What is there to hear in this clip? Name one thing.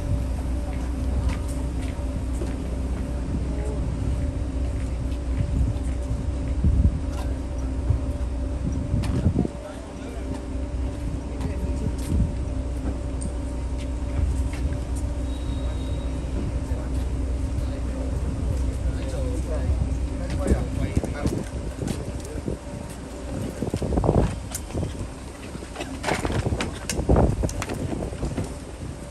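Footsteps shuffle and tap on pavement outdoors.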